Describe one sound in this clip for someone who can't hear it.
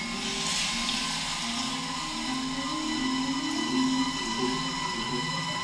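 Electronic music with droning tones and shifting low notes plays through loudspeakers in a large hall.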